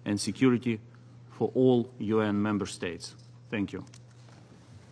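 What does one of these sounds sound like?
A man speaks calmly and formally into a microphone.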